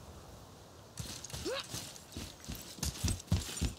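Heavy footsteps run on stone.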